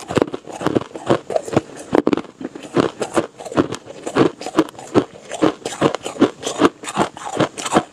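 Ice crunches and crackles as hands squeeze it close to a microphone.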